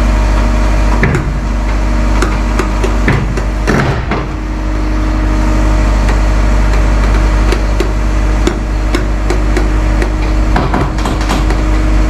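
An excavator's metal bucket clanks and knocks.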